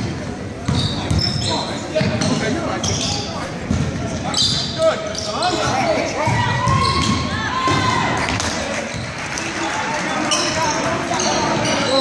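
Spectators talk and cheer in a large echoing gym.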